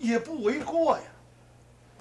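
An older man exclaims loudly.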